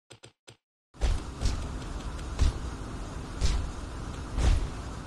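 Swords clash and magic blasts boom in a noisy battle.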